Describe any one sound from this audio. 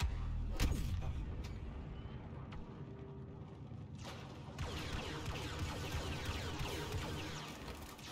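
Blaster shots fire in rapid bursts.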